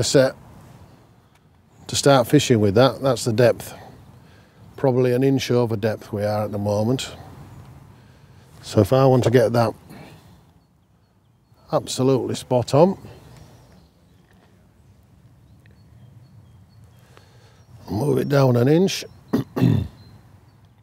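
An older man talks calmly and close by, in short bursts with pauses.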